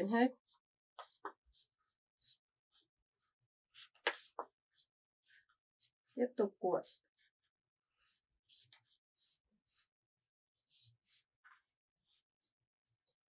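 Plastic strips rustle and click softly as hands bend them.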